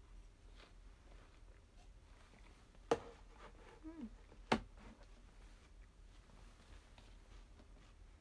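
A young woman chews food quietly.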